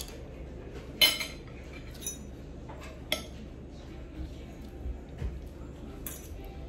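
Metal cutlery clinks against a plate.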